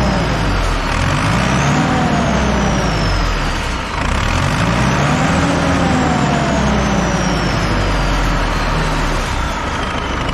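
A tractor engine revs up twice and falls back.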